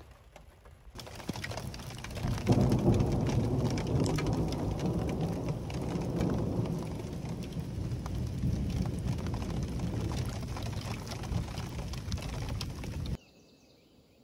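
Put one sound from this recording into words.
Rain falls steadily on trees outdoors.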